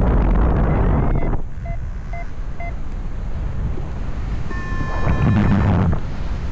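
Wind rushes loudly past in strong gusts high in the open air.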